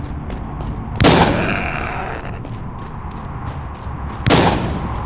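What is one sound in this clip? A shotgun fires loud blasts that ring out.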